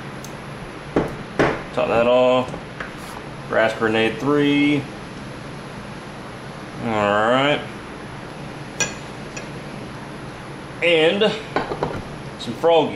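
A clamp knocks and clicks against a bench.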